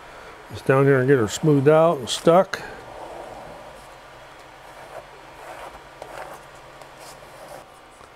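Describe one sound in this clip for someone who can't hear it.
A plastic scraper rasps across a sticky mat.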